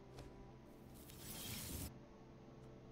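A game plays a whooshing effect as a card transforms.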